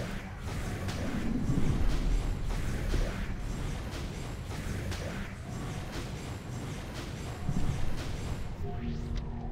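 Blades slash and clash in quick bursts.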